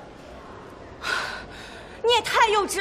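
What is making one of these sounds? Another young woman answers briefly, close by.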